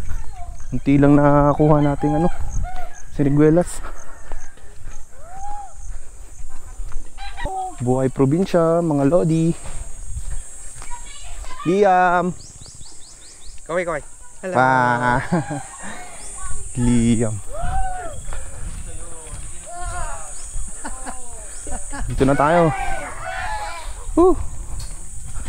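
A young man talks with animation close to a microphone, outdoors in light wind.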